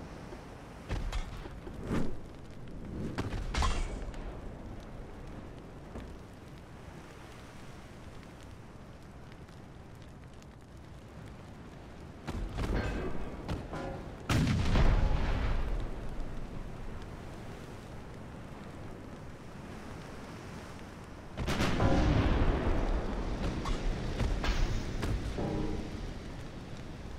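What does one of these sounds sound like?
Heavy naval guns boom in loud, rumbling bursts.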